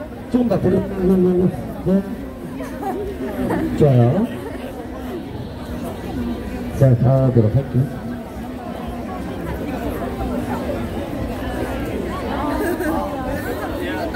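A crowd of young people chatters and calls out outdoors.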